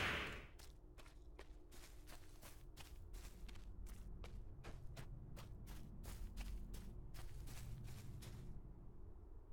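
Hooves clop in a quick, steady rhythm.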